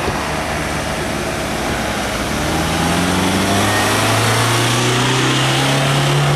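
A van engine rumbles as the vehicle drives up and passes close by.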